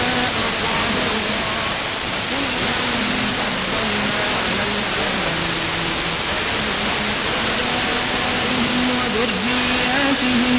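A car radio hisses loudly with static.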